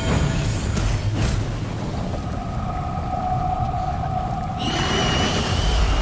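Energy beams blast with a loud humming roar.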